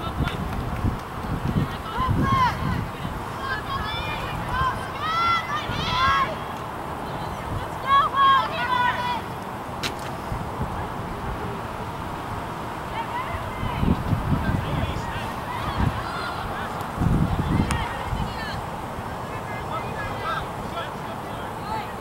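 Players shout to each other far off across an open field.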